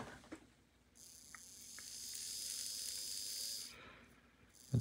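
A small electric motor whirs steadily.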